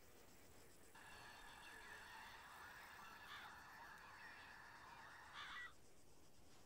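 Wind blows steadily across open grassland.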